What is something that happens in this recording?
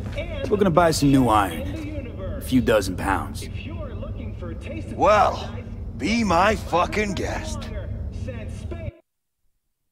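A man speaks casually, with animation.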